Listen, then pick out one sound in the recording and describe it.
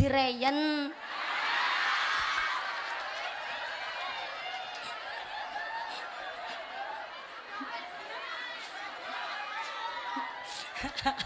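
A crowd of women cheers and chatters.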